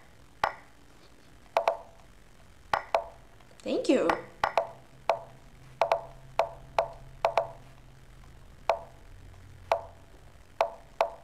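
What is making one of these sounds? Short sharp clicks sound in quick, uneven succession as chess pieces are moved.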